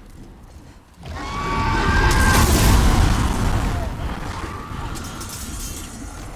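A dragon's fiery blast roars and crackles.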